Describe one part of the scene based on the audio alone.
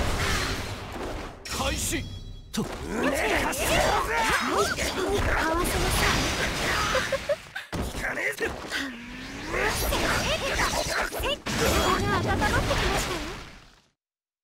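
Heavy blows thud with sharp impact bursts.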